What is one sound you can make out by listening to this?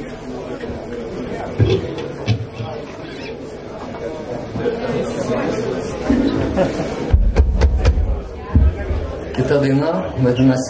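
Drums are struck in heavy hits.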